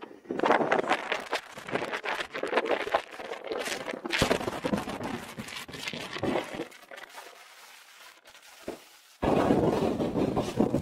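Wind buffets loudly past an open car in gusts.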